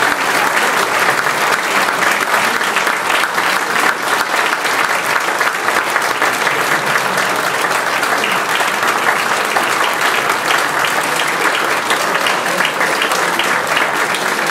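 An audience claps and applauds steadily in a large room.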